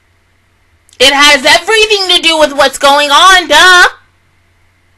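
A young woman speaks loudly and with animation into a close microphone.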